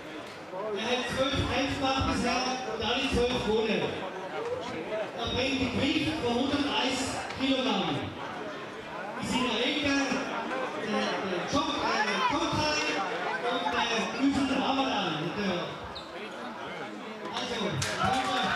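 A man announces loudly through a loudspeaker in a large echoing hall.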